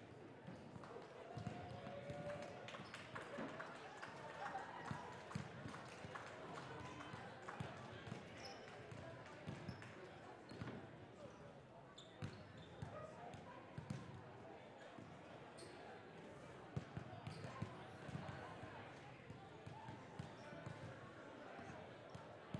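A crowd murmurs in the stands.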